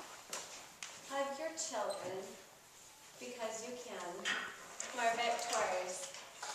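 A young woman speaks calmly, in a room with some echo.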